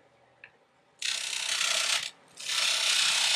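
A gouge cuts wood on a lathe with a loud rushing scrape.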